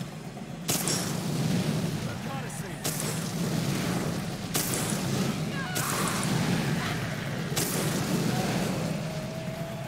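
Guns fire in bursts of loud shots.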